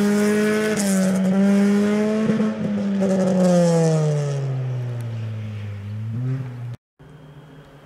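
A rally car engine roars loudly as the car speeds past, its pitch dropping as it moves away.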